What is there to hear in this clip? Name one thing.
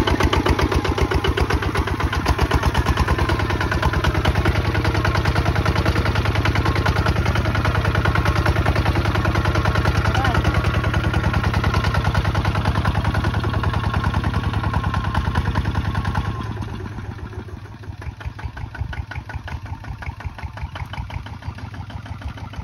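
A small diesel engine chugs loudly and steadily up close, then more quietly from farther away.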